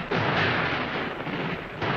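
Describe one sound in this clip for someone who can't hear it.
Artillery guns fire with heavy booms.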